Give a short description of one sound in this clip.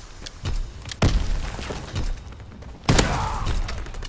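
Loud rifle shots crack and echo.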